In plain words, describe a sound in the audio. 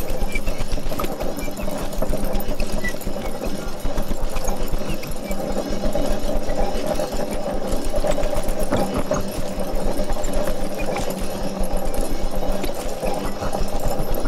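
Small objects scrape and rattle on a tabletop.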